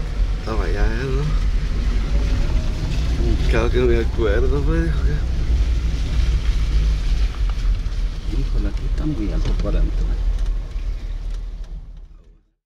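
Tyres swish and splash through shallow floodwater.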